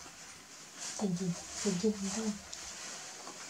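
A woman speaks softly and close by.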